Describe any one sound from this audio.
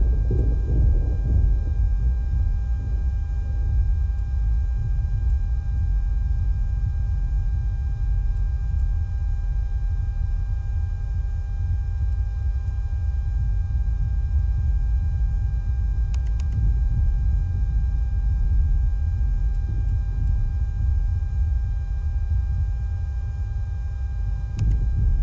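A turbine whines with a steady high tone.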